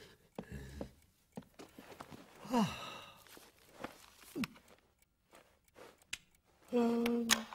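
A man mumbles and grunts contentedly in a cartoon voice.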